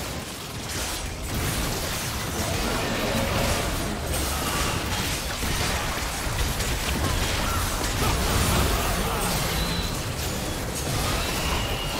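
Game spell effects crackle and boom during a battle.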